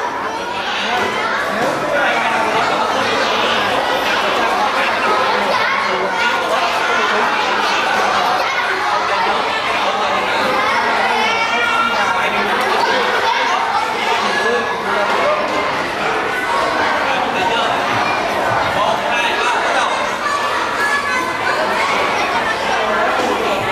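A crowd of children and adults chatters and calls out nearby.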